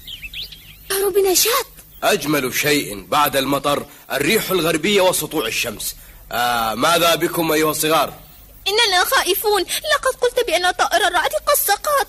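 A young boy speaks with animation, close by.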